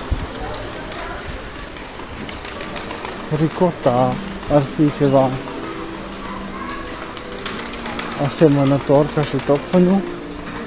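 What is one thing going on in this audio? Shopping cart wheels rattle across a hard floor.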